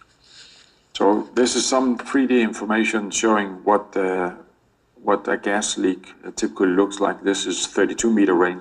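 A man speaks steadily over an online call, heard through a loudspeaker in a room.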